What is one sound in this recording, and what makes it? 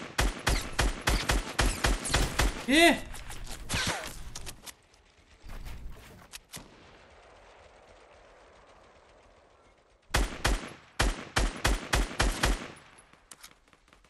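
Rapid gunshots crack in bursts.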